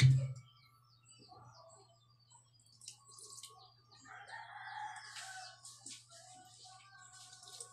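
Liquid glugs as it pours from a bottle.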